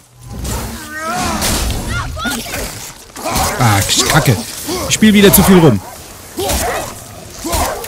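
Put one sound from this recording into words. An axe whooshes through the air.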